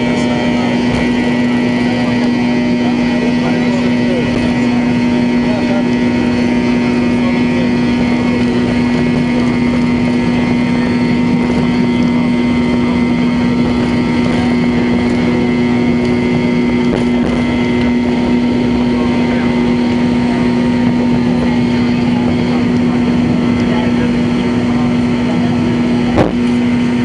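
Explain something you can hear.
Jet engines roar steadily with a loud droning hum as an airliner speeds down a runway and climbs.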